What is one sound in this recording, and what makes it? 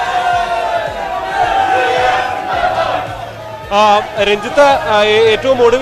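A crowd of men cheers and chants loudly with excitement.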